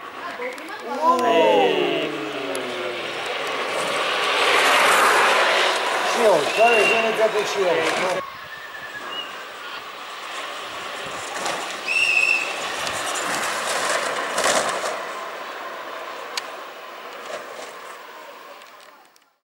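A go-kart engine whines high and revs as the kart races past.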